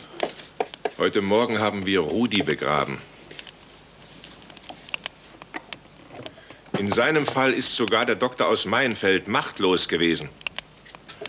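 An elderly man speaks calmly and closely.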